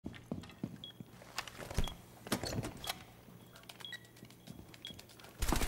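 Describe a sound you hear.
A device gives short electronic beeps.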